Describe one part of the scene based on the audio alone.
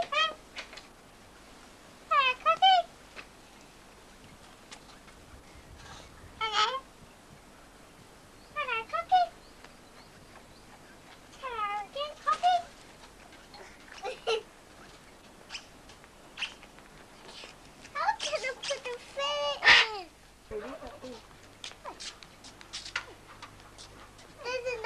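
A young child talks excitedly in a high voice nearby.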